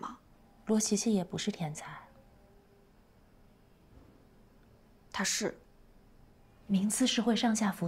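A young woman speaks calmly and seriously up close.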